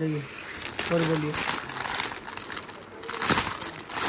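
Plastic wrapping crinkles and rustles as it is lifted from a box.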